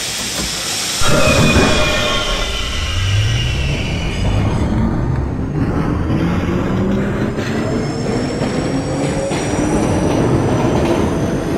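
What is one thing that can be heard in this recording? A train's electric motors whine, rising in pitch as it speeds up.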